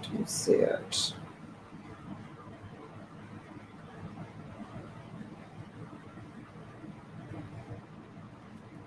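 Straps of a sandal rustle softly in hands.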